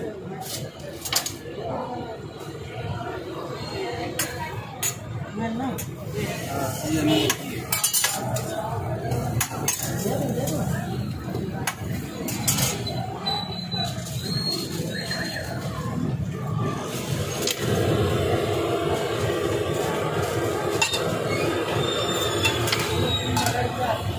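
A metal spatula scrapes and clicks against a hot griddle.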